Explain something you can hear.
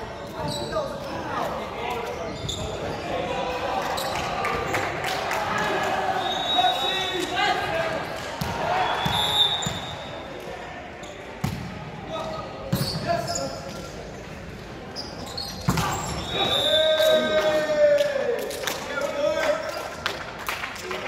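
Young people shout and cheer in an echoing gym.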